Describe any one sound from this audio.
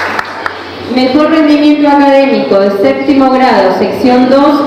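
A young woman speaks clearly into a microphone over loudspeakers.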